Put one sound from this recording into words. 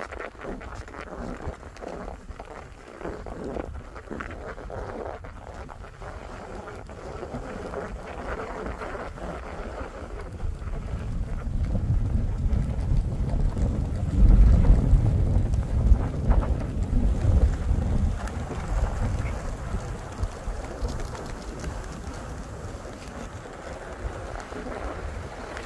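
Skis slide and hiss over snow.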